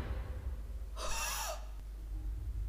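A young woman gasps loudly close to a microphone.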